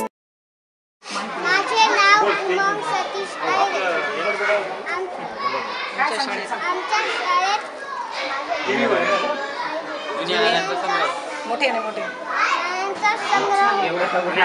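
A young boy speaks clearly and carefully, close to a microphone.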